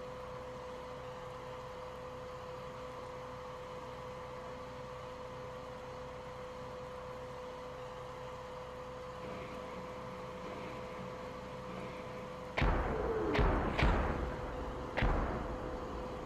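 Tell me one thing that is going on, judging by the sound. A tank engine hums steadily.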